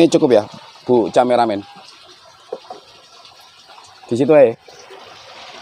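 Fish splash softly in shallow water.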